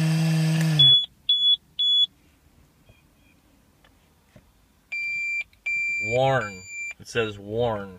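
An electronic device beeps several times.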